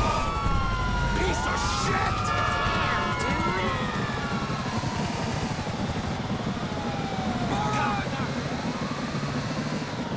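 A van engine roars as it drives fast.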